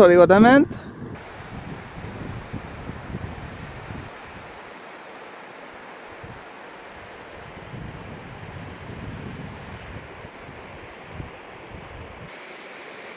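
A waterfall rushes and splashes steadily over rocks close by.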